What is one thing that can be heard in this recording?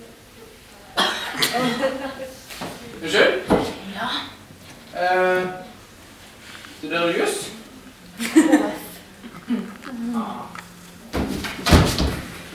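A young man speaks with animation on a small stage, heard from the audience.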